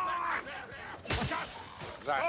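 A longsword strikes a body with a heavy thud.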